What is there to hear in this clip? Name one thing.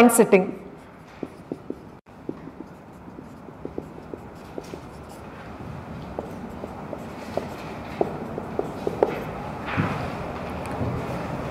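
A marker taps and scratches on a whiteboard.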